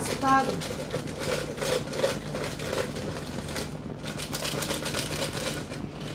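A plastic jar rattles as it is shaken.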